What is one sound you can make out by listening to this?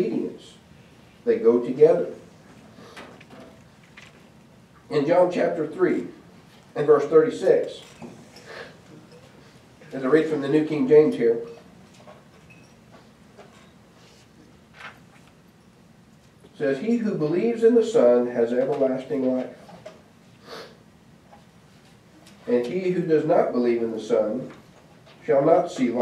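A man reads aloud calmly into a microphone, pausing between phrases.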